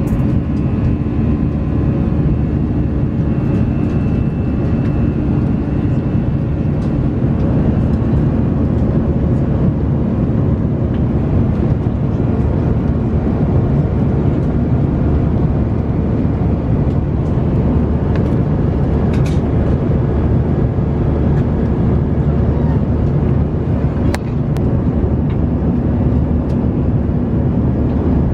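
A steady, low aircraft cabin roar fills the air.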